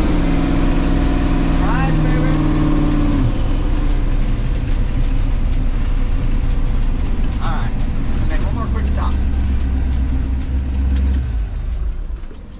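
A heavy truck's diesel engine rumbles loudly from inside the cab while driving.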